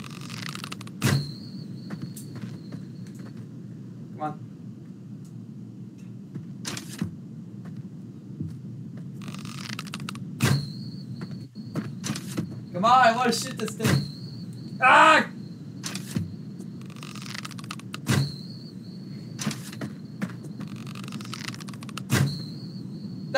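A bowstring twangs as arrows are loosed, again and again.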